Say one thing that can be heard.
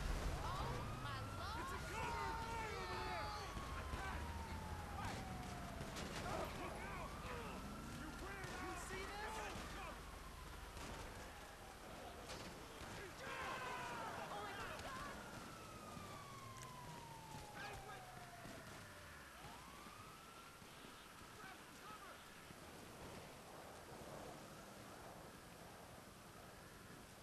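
Rain hisses steadily outdoors.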